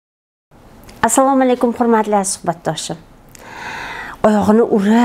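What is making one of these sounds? A middle-aged woman speaks calmly and clearly into a close microphone.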